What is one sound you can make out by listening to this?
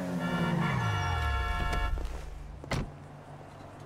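A car engine revs and winds down as the car slows to a stop.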